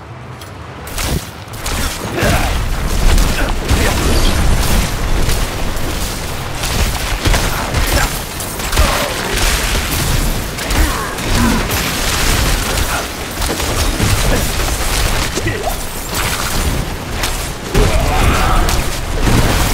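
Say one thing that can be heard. Magic blasts crackle and boom in rapid bursts.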